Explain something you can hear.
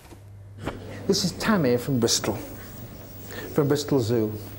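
A man speaks animatedly through a small television speaker.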